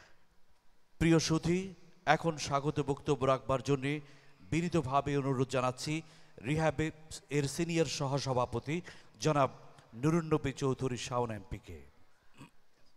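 A man speaks with animation through a loudspeaker in a large hall.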